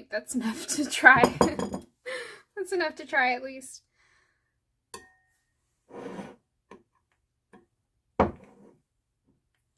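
A spoon clinks and scrapes against a plate.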